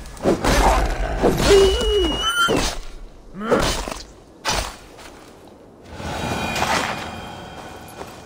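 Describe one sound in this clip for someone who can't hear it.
Leafy bushes rustle as a figure pushes through them.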